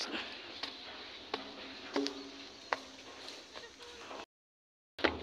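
Footsteps thud on metal stair treads.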